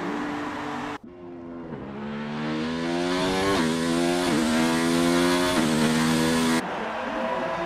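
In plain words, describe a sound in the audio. A racing car engine revs up high, rising in pitch and dropping briefly at each gear change.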